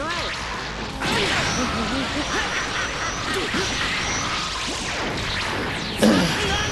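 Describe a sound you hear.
Punches and kicks land with sharp impacts.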